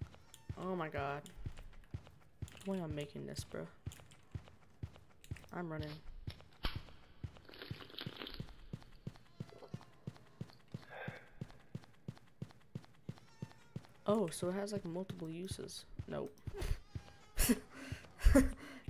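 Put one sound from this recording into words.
Footsteps tap quickly and evenly on a hard floor.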